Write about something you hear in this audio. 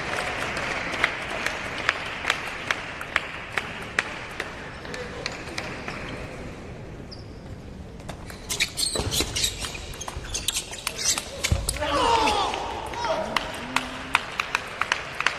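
A table tennis ball clicks sharply back and forth off paddles and a table.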